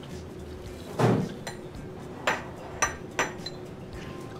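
Dishes clink against a table.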